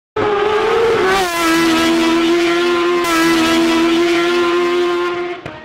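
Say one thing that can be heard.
A car engine hums steadily at a low, even pitch.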